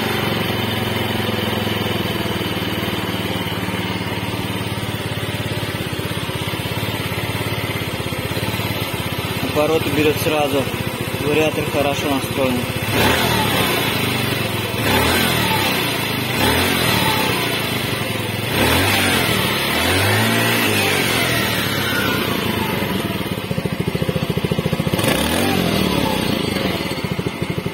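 A small scooter engine idles steadily close by.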